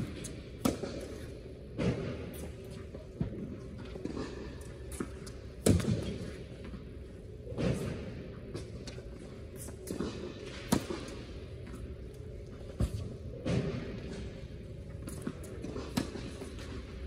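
A tennis ball is struck sharply with a racket, again and again, echoing in a large hall.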